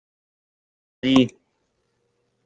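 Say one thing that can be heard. An elderly man says a short word over an online call.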